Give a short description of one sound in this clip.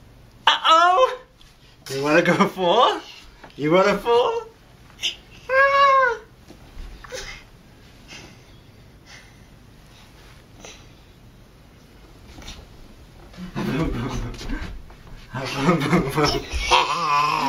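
A toddler squeals and babbles with delight close by.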